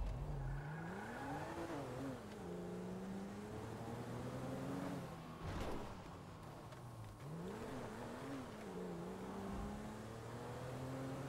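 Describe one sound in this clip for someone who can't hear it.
Car tyres roll over a road.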